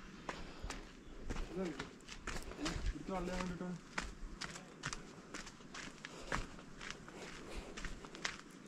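Footsteps crunch and scuff on dirt steps outdoors.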